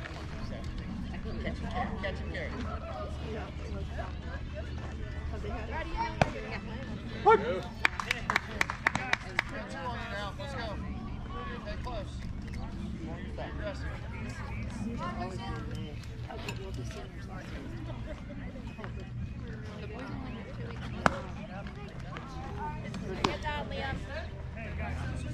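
Men and women call out and chat across an open outdoor space.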